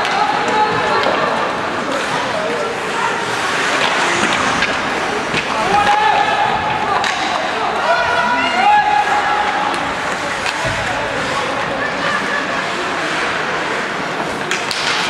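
Skates scrape and hiss across the ice in a large echoing arena.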